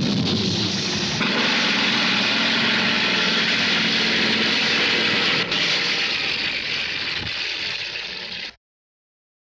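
A helicopter engine and rotor roar loudly and steadily.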